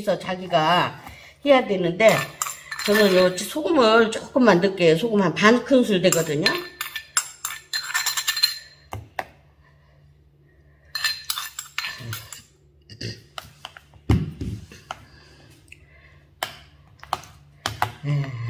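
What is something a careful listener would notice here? A metal spoon clinks and scrapes against a bowl and a plastic container.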